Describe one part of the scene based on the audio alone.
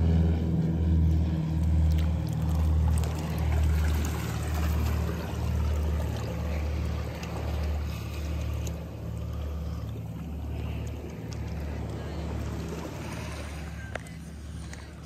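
Water gurgles and rumbles, muffled as if heard underwater.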